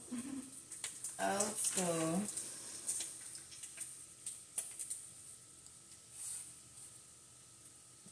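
Bacon sizzles and crackles in a hot frying pan.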